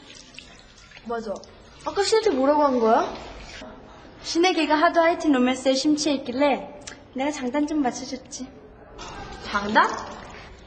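A young woman speaks with animation.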